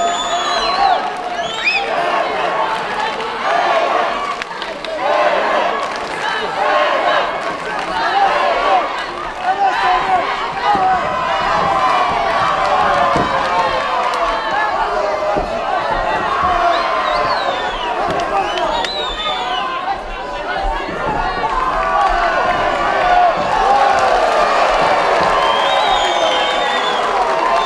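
Spectators in a crowd whistle shrilly.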